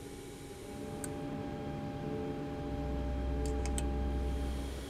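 Switches click sharply a few times.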